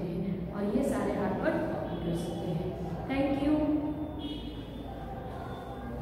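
A young woman speaks calmly and clearly to listeners close by.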